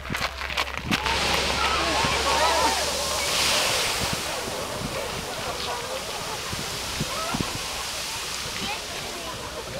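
A geyser erupts in a rushing, hissing burst of water and steam.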